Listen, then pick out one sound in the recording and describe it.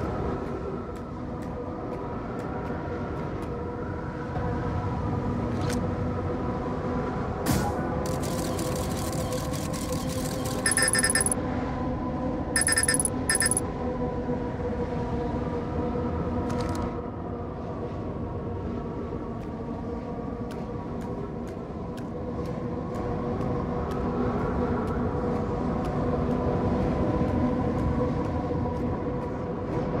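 A low, eerie droning hum plays steadily.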